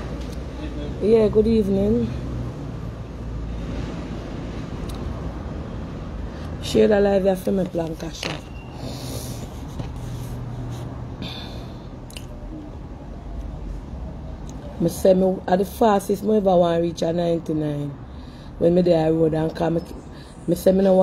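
A woman talks calmly and close up, in short bursts.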